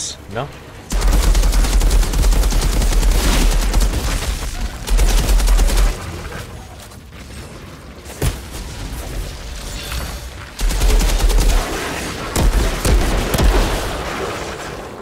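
Gunfire from a game blasts in rapid bursts.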